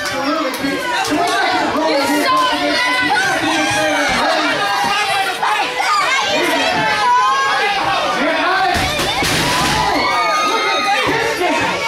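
Bodies thud onto a wrestling mat.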